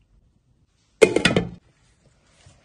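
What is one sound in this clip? A glass lid clatters onto a metal pan.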